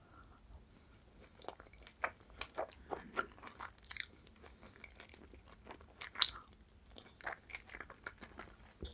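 A woman chews food with wet smacking sounds close to the microphone.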